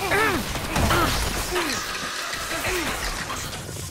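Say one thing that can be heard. Electric bolts crackle and zap.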